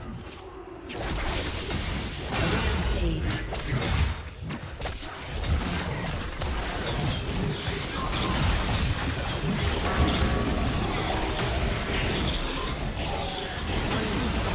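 Game weapons clash and strike in quick bursts.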